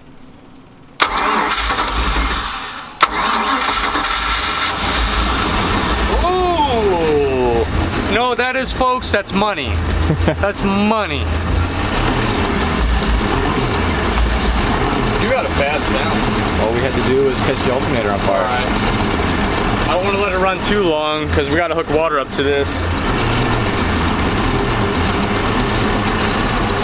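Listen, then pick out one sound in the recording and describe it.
A boat engine idles with a steady low rumble.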